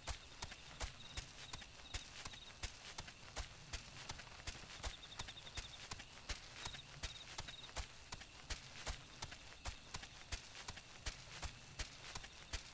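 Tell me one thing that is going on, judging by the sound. A running mount's feet thud on soft ground in a quick, steady rhythm.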